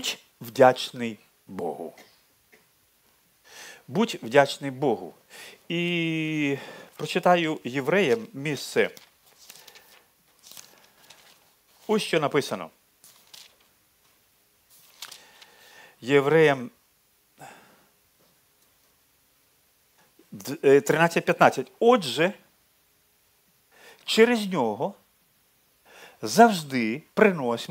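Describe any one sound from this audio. A middle-aged man speaks calmly into a headset microphone, with pauses.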